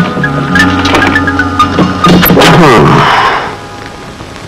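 A telephone rings loudly.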